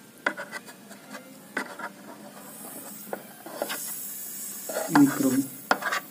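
A tube splashes and stirs in shallow water.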